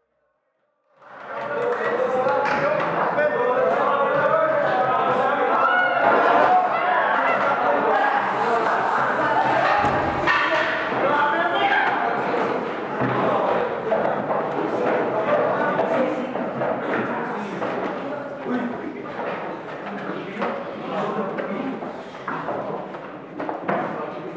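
A roomful of young men chatter and talk over one another, echoing in a hard room.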